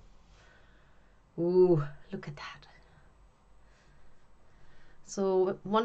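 Soft wool fibres rustle faintly as hands pull and lay them down.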